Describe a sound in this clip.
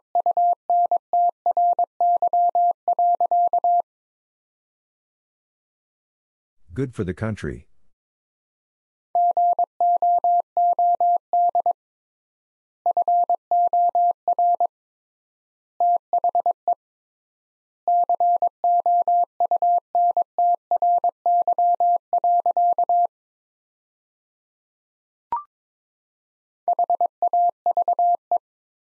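A telegraph key taps out Morse code beeps in quick bursts.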